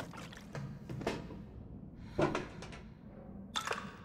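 A metal box lid creaks open.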